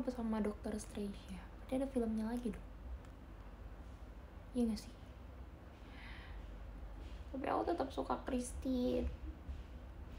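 A young woman speaks softly and close to a microphone, with pauses.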